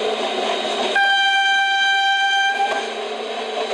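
A train horn blares loudly for about two seconds.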